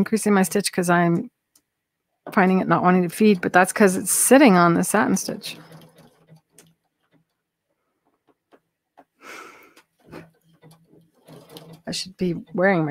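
A sewing machine stitches steadily.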